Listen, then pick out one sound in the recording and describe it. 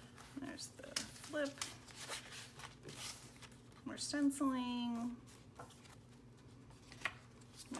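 Stiff paper pages rustle and flap as they are turned by hand.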